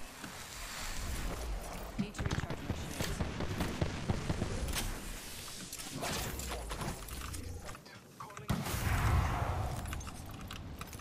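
Gunfire from a video game cracks in rapid bursts.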